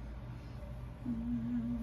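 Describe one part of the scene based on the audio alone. A young woman hums softly close by.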